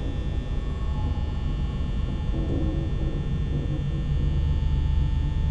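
A steady low electrical hum drones throughout.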